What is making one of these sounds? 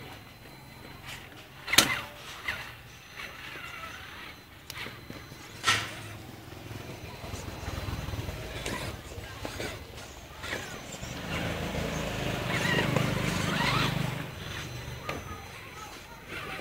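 Tyres of a radio-controlled truck crunch and knock over dirt and stones.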